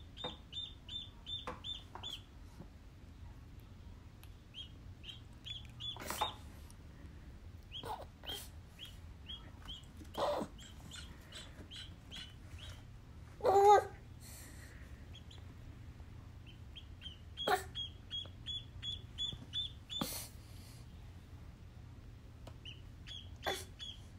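A duckling peeps in quick, high chirps close by.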